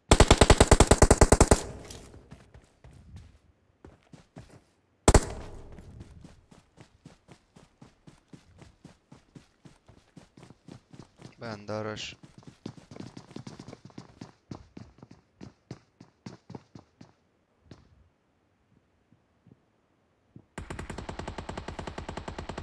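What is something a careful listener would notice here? Rapid automatic gunfire rattles loudly in bursts.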